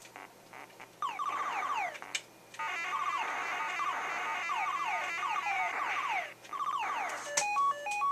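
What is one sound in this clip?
Electronic laser shots zap rapidly in a video game.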